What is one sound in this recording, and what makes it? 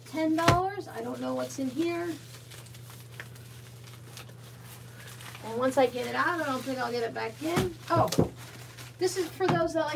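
A plastic mailer crinkles as it is handled close by.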